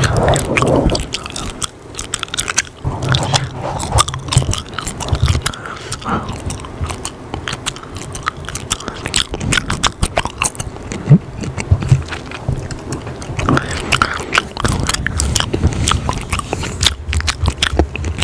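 A young man whispers softly, very close to a microphone.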